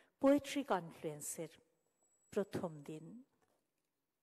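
A woman speaks into a microphone over a loudspeaker.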